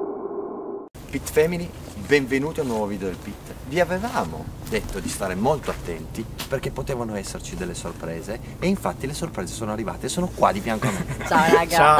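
A young man speaks calmly close by, outdoors.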